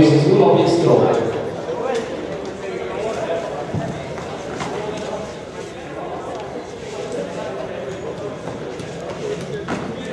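Several young men talk and call out in a large echoing hall.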